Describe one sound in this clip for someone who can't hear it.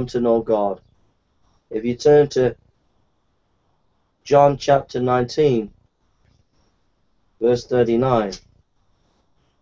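A middle-aged man reads aloud slowly through a microphone, with pauses.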